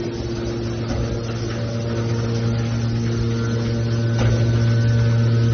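Metal scrap creaks and clanks as a press squeezes it.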